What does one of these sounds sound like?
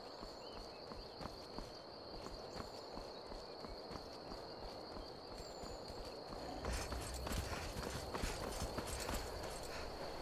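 Footsteps crunch steadily on a gravel path.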